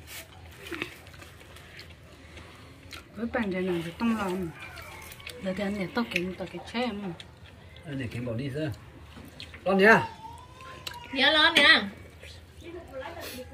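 A young woman slurps noodles loudly.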